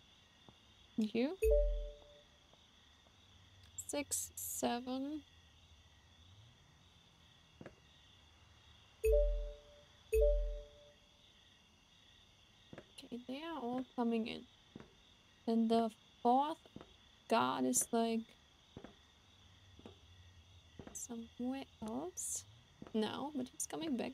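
A young woman speaks calmly and close to a microphone, with pauses.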